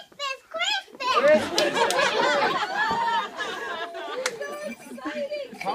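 A crowd of children and adults chatters in a room.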